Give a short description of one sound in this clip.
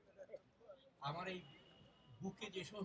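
An elderly man begins speaking into a microphone over loudspeakers.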